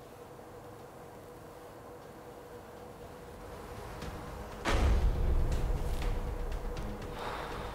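Heavy fabric rustles as it is lifted and pulled aside.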